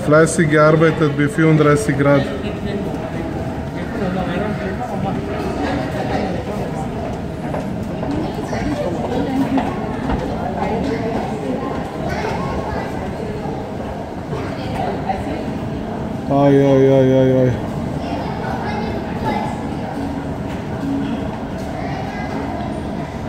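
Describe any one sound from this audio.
Construction work clatters and rumbles from a building site below.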